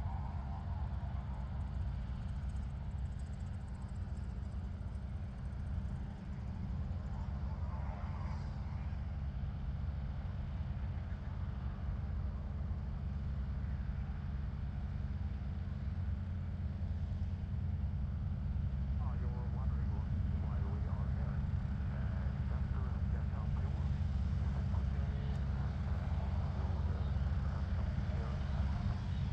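Wind rumbles across the microphone outdoors.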